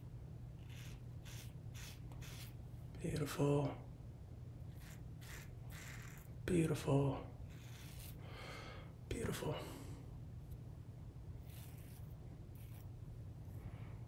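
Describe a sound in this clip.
A razor scrapes softly across skin.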